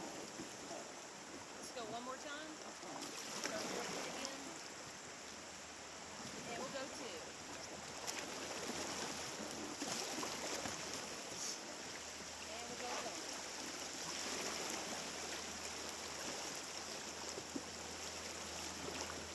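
River water rushes and splashes around a raft, outdoors.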